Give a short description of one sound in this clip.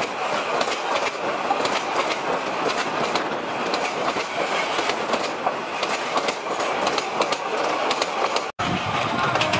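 Train wheels clatter loudly over rail joints close by.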